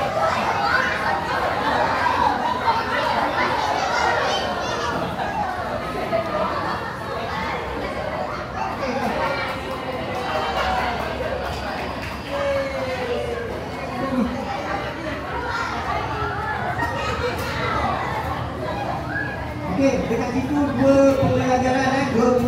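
Many men and women chatter all around in a busy, echoing room.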